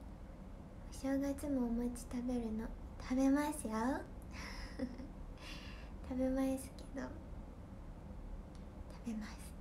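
A young woman speaks close up in a lively, high voice.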